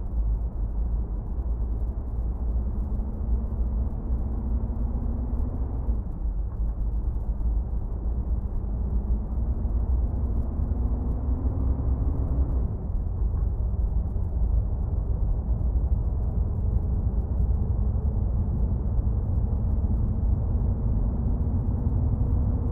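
A truck engine rumbles low and steady, rising in pitch as it speeds up, with brief drops at gear changes.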